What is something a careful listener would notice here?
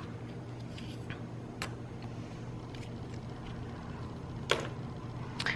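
Paper stickers rustle and crinkle as hands press them onto a page.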